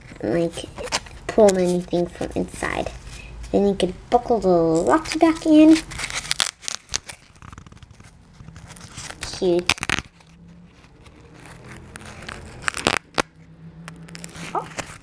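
Craft foam rustles softly as fingers handle it.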